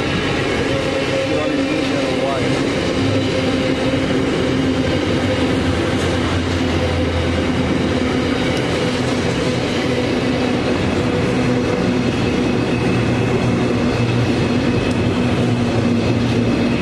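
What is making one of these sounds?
A long freight train rumbles and clatters steadily past, close by.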